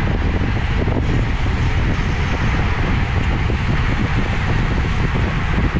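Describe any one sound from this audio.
Bicycle tyres hum on the road.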